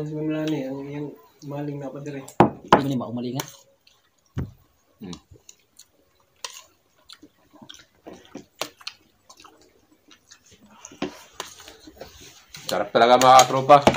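Spoons scrape and clink against plastic plates.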